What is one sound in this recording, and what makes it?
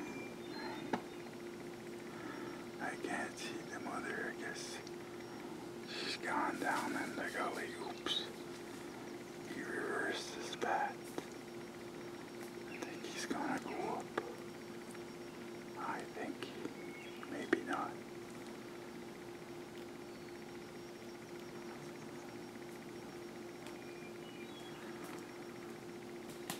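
A deer steps softly through rustling undergrowth.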